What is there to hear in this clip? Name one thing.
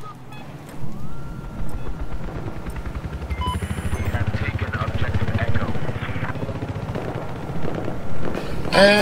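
A small drone buzzes steadily.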